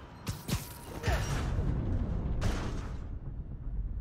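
A heavy metal door is ripped away with a loud crash.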